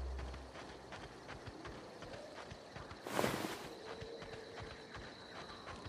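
Footsteps crunch on loose ground.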